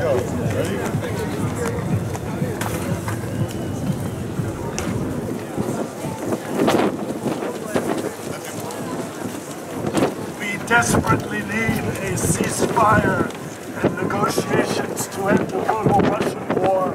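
A crowd of adults chatters nearby outdoors.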